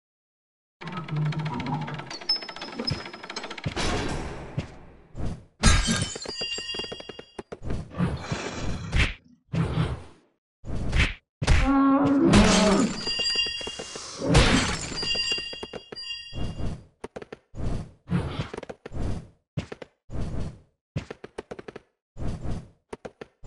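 A heavy creature stomps along in short bursts.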